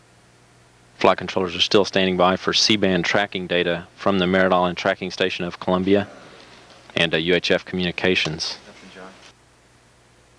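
A man speaks calmly over a radio link.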